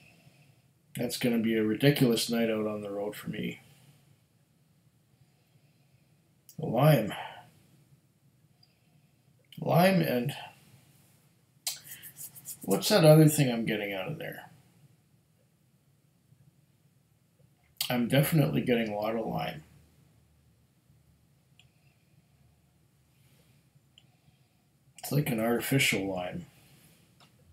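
A middle-aged man speaks calmly in short bursts, close to a microphone.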